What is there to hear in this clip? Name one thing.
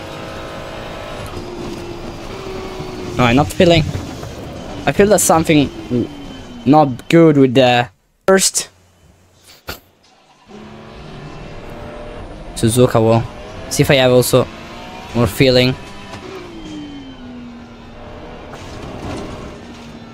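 A racing car engine roars and shifts gears.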